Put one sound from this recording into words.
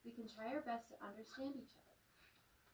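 A young woman reads aloud in a calm, lively voice.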